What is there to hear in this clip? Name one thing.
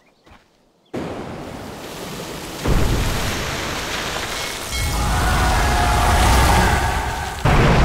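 A magic blast roars and crackles.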